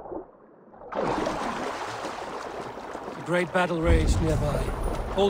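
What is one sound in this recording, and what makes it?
A swimmer splashes at the water's surface.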